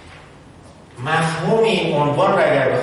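A middle-aged man lectures calmly into a microphone.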